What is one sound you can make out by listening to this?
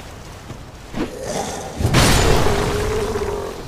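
A heavy blade swings and strikes with a loud thud.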